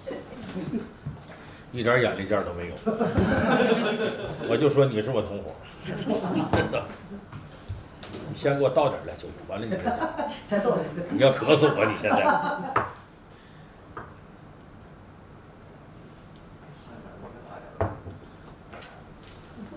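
A small cup clinks on a hard surface.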